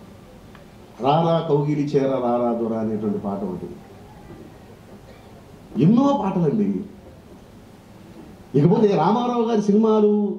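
A man speaks through a microphone and loudspeakers, in short bursts with pauses.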